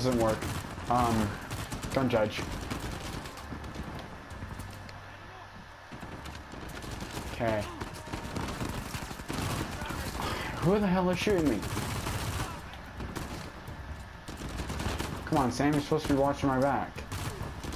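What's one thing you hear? A rifle fires.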